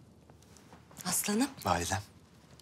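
A woman speaks warmly, close by.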